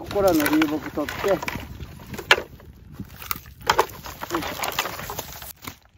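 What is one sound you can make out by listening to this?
Dry sticks clatter and knock together as they are gathered.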